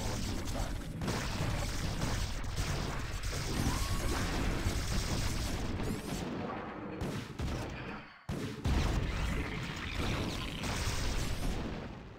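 Explosions boom and rumble during a battle.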